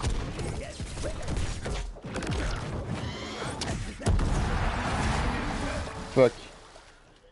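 Cartoon fight effects crash and whoosh rapidly.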